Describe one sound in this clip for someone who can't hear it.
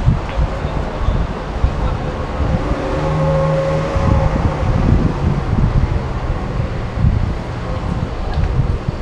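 Car traffic hums steadily along a city street below.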